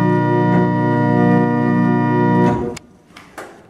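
An organ plays sustained chords.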